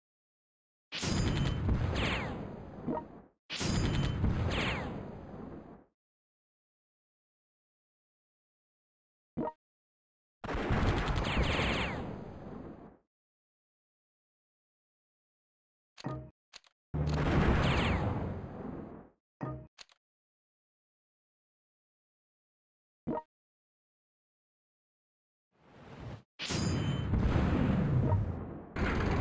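Heavy explosions boom in short bursts, each fading away in a rumble.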